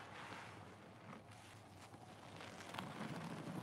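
A soapy sponge squelches as it is squeezed by hand.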